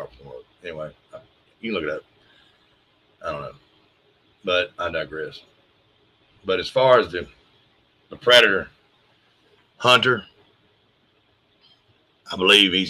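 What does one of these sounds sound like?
A middle-aged man speaks calmly in short phrases through a microphone on an online call.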